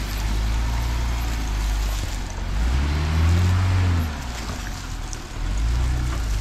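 Dry leaves crunch under tyres.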